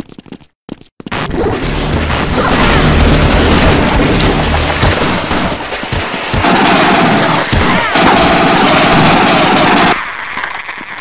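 Rapid gunfire rattles loudly in an echoing concrete space.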